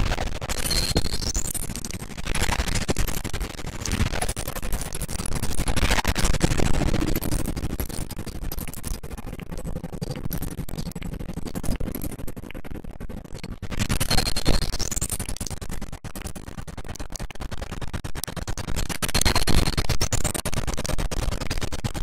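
Coins jingle and chime as they are collected.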